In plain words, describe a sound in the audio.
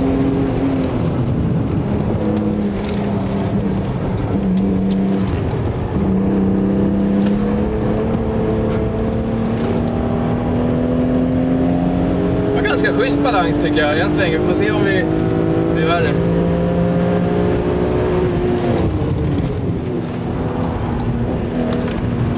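A car engine hums and rises in pitch as the car speeds up.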